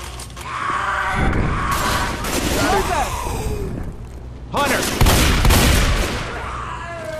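A rifle fires rapid loud shots.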